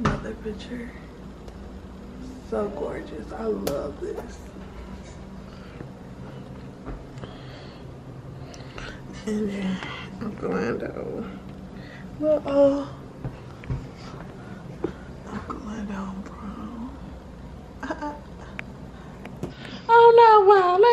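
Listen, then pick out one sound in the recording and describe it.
A young woman speaks softly close to the microphone.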